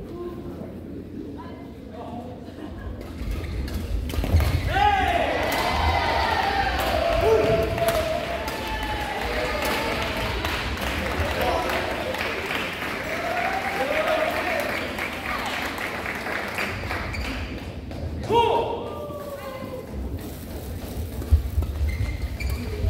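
Rackets strike a shuttlecock in a large echoing hall.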